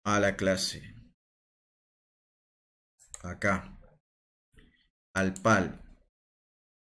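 A middle-aged man speaks calmly in short phrases, close to a microphone.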